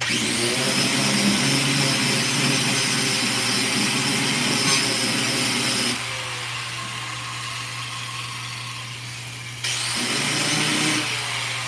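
A handheld power polisher whirs loudly against a car panel.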